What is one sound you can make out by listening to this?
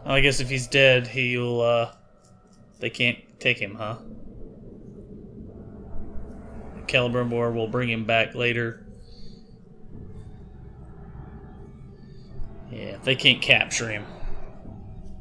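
A man speaks slowly in a deep, menacing voice.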